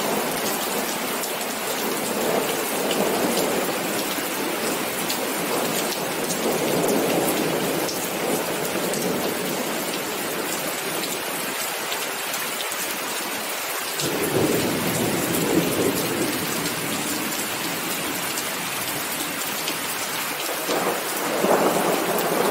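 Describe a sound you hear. Steady rain falls and patters on wet pavement outdoors.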